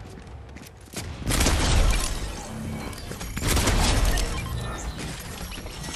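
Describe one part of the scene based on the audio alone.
A shotgun fires several loud, sharp blasts.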